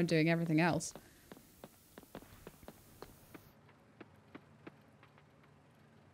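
Footsteps crunch softly on a path.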